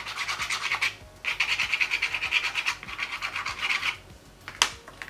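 Fingers rub briskly over paper in quick strokes.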